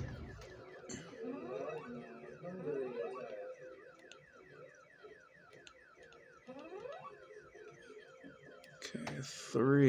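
Buttons on a handheld game console click under a thumb.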